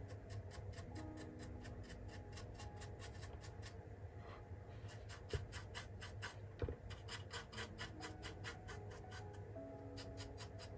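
A stiff brush scratches rapidly back and forth against a hard surface.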